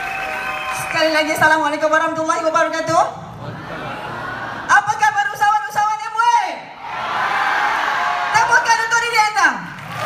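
A young woman sings into a microphone over loudspeakers.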